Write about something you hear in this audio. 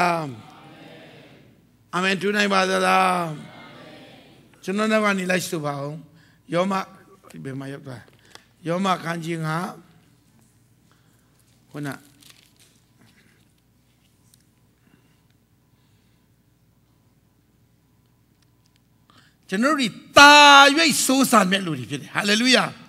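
A man preaches with animation through a microphone in an echoing hall.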